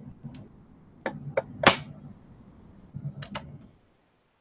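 Metal pliers clack as they are set down on a hard table.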